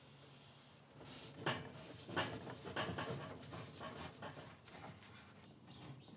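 A sanding block scrapes back and forth on wood.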